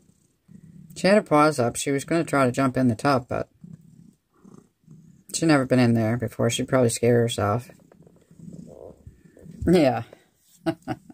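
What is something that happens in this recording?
A cat meows loudly and at length close by.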